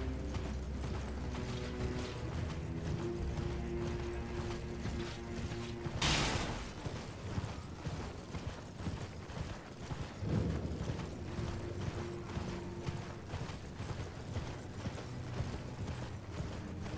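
Hooves gallop steadily over soft ground.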